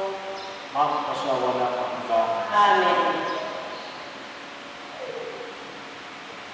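A man sings a chant through a microphone in a large echoing hall.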